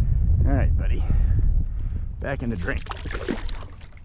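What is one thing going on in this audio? A fish splashes into water as it is released.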